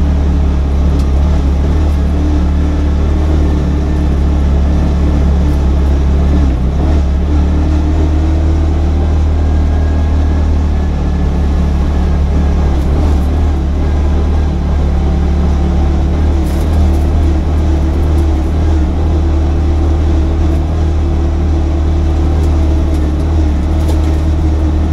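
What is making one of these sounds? Mud and small stones tick against the underside of the car.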